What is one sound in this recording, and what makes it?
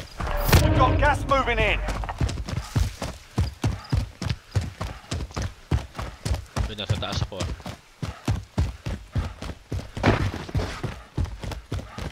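Quick footsteps run over grass and gravel.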